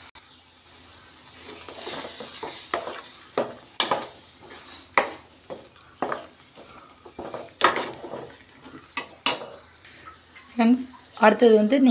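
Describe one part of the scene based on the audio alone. A metal spoon scrapes and clatters against a pan while stirring.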